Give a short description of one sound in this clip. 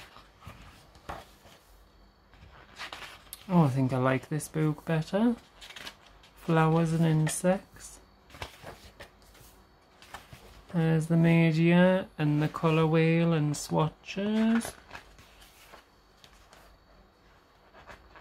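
Paper pages rustle and flip as a book's pages are turned.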